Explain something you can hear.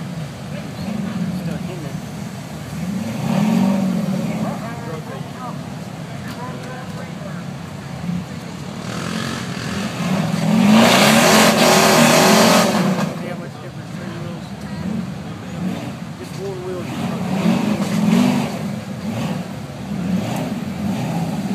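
A rock crawler's engine rumbles low and revs up in bursts.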